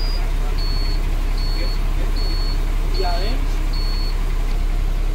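A bus door warning beeps repeatedly.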